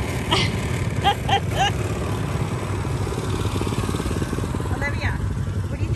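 A small quad bike engine idles with a fast, steady putter close by.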